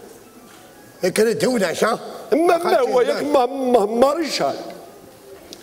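An older man speaks animatedly through a microphone.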